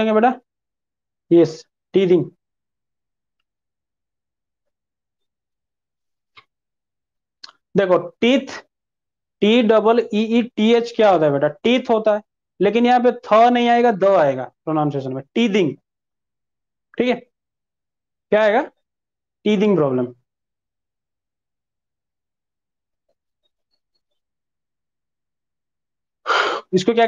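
A young man speaks calmly into a close clip-on microphone, in short bursts with pauses.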